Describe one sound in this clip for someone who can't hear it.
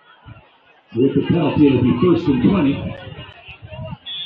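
A crowd of spectators and players cheers loudly outdoors.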